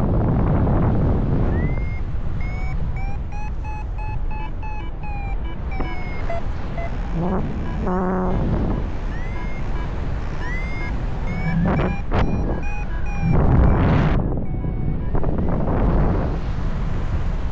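Wind rushes and buffets loudly past the microphone.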